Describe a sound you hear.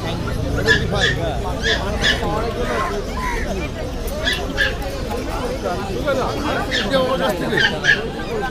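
Many people talk in a busy crowd outdoors.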